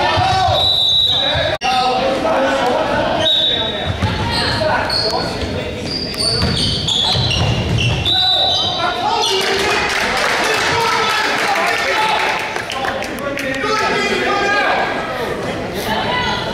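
Spectators chatter and call out in a large echoing gym.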